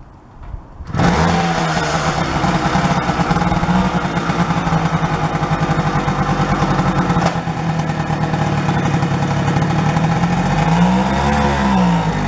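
A small two-stroke engine sputters to life and idles with a rapid, steady putter.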